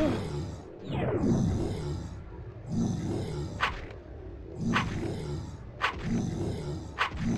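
Blasts of magic whoosh repeatedly.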